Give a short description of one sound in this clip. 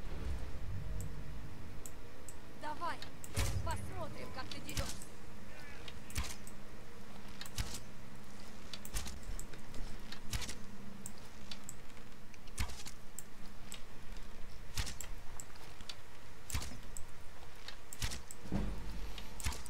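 A bowstring twangs again and again as arrows are loosed.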